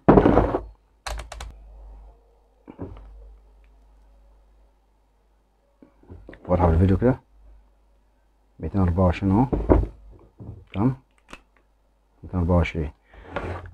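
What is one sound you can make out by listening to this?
Metal test probes tap and click against contacts.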